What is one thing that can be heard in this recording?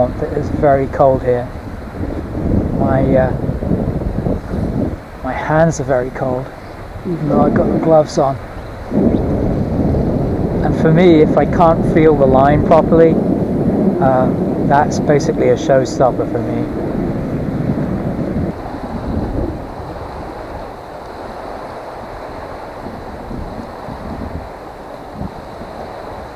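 Wind buffets outdoors beside open water.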